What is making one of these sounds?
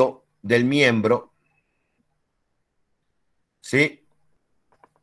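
A man speaks briefly through an online call microphone.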